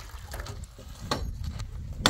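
A hammer knocks sharply on a metal frame.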